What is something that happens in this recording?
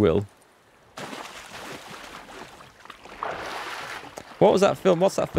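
Water splashes as a figure wades through shallows.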